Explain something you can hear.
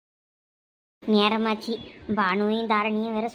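A young girl speaks in a high, cheerful voice.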